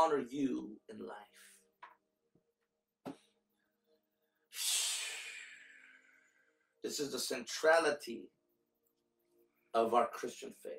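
A man speaks with feeling into a close microphone, pausing often.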